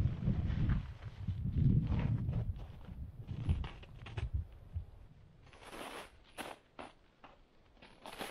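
Footsteps crunch in snow.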